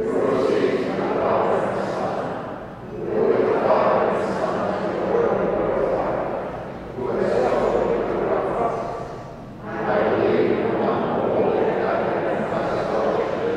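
An elderly man reads out aloud in a calm, steady voice through a microphone in a large echoing hall.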